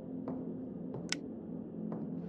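A light switch clicks.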